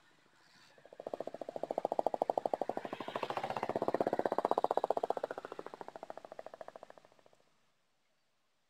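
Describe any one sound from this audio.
Small commuter motorcycles pull away.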